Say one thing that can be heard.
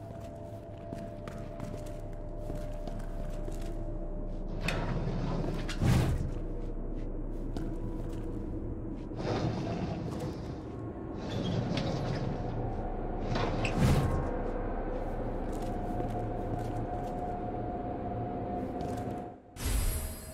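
A low, eerie hum drones steadily.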